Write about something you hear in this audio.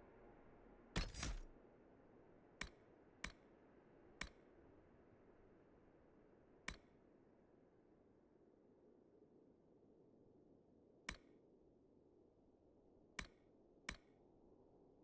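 Short game menu clicks sound as options are selected.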